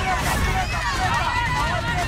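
A young woman shouts encouragement.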